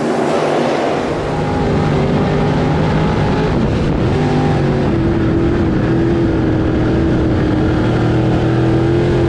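A race car engine roars loudly from close inside the car.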